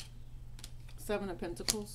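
Playing cards rustle as they are shuffled by hand.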